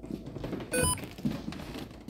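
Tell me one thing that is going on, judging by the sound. Footsteps scuff on a wooden floor.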